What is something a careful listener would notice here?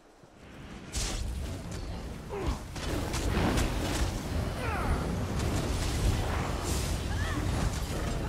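Magic spells crackle and blast in a fight.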